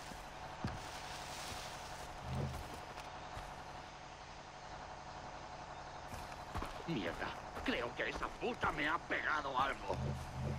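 Footsteps thud on dirt and grass.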